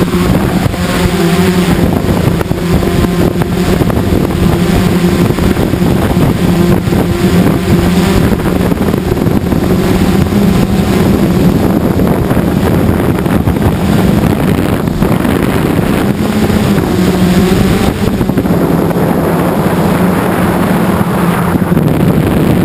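Drone propellers whine and buzz loudly close by.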